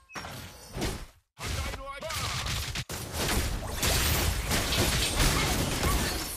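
Magic blasts and sword hits crackle and boom in a fast fight.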